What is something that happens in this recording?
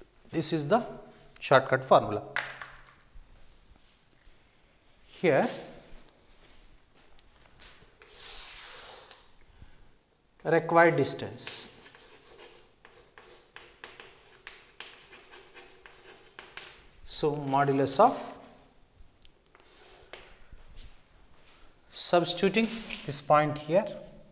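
A middle-aged man speaks calmly in short bursts, like a teacher explaining.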